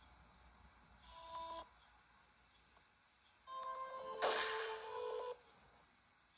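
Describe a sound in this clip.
Short electronic startup chimes play through a small device speaker.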